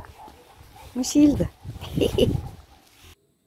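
A cat meows loudly nearby.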